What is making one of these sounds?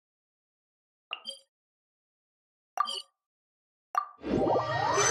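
A soft chime sounds several times.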